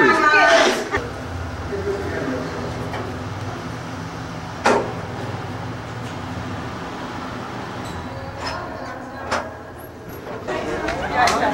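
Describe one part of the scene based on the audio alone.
Footsteps echo in a large empty space.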